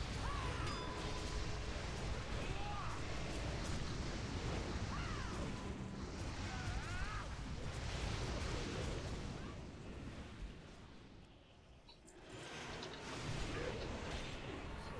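Spell effects crackle and whoosh in a game battle.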